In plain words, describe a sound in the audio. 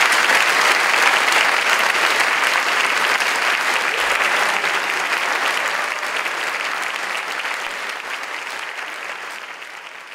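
An audience applauds loudly in a large hall, slowly fading.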